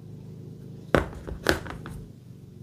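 A plastic phone case is set down on a hard surface with a knock.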